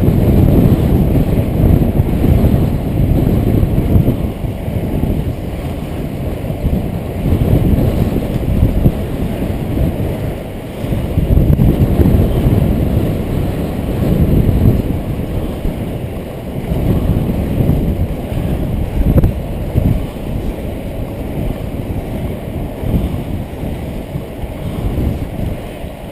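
Inline skate wheels roll on asphalt.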